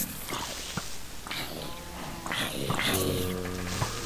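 A sword strikes a zombie with short thuds.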